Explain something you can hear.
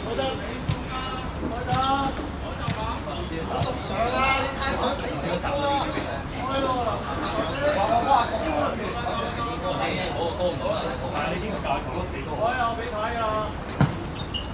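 Young men call out and chatter nearby outdoors.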